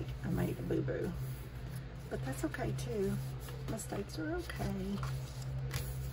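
Paper rustles as a sheet is folded and turned over.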